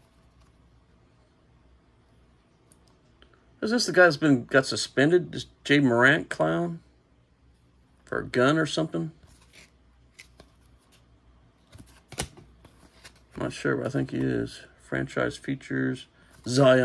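Trading cards slide and rustle softly against each other in hands.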